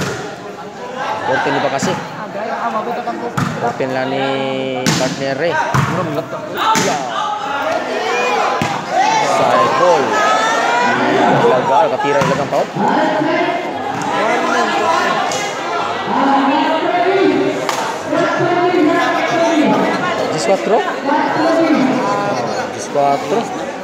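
A large crowd chatters and shouts, echoing under a big roof.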